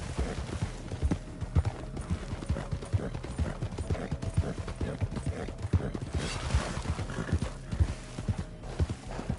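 Horse hooves thud rapidly on dry ground at a gallop.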